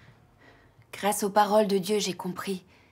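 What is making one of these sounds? A young woman speaks earnestly nearby.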